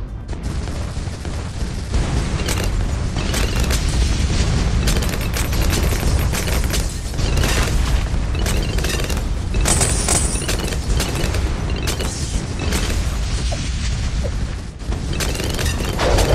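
Cartoonish explosions and shots crackle and boom without a break.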